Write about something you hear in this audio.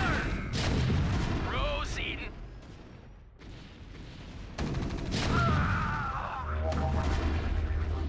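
An explosion booms in a video game.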